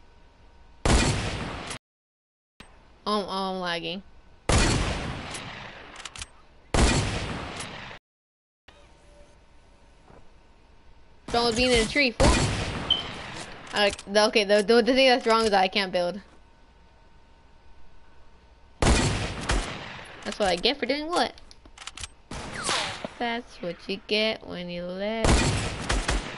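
A shotgun fires loud, booming shots, one at a time.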